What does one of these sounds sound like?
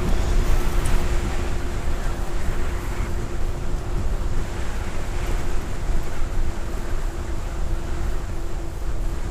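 Tyres roll over a paved path.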